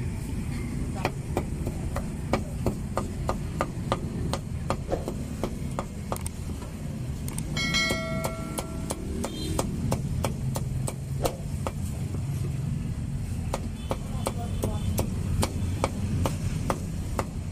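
A cleaver chops meat on a wooden board with quick knocks.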